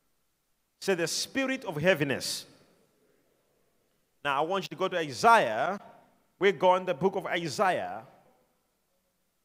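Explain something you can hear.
A man preaches with animation through a microphone, with a slight echo.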